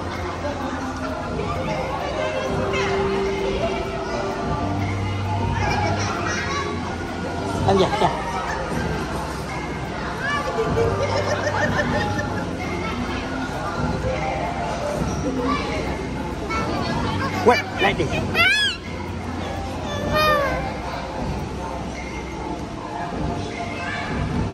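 Many children and adults chatter in a busy, echoing hall.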